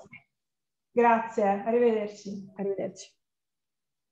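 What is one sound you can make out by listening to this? A young woman speaks brightly over an online call.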